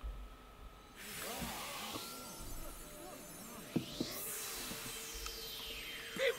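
A magical shimmer whooshes upward and sparkles.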